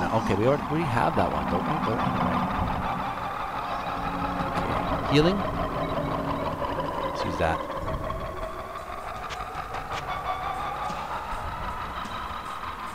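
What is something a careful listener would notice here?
A man talks into a close microphone in a relaxed voice.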